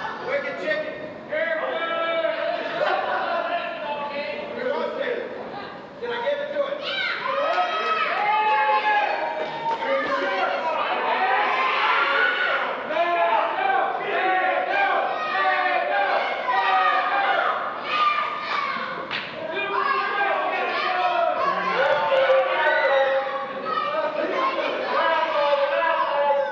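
A crowd of men and women shout and cheer nearby in an echoing hall.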